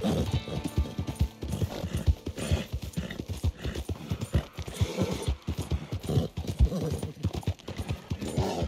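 Horse hooves thud steadily on a dirt path.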